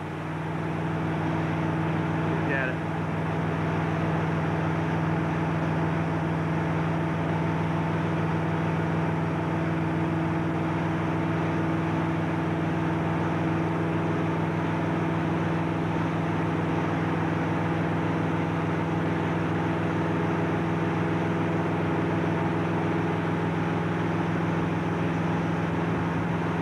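A motorboat engine drones steadily close by.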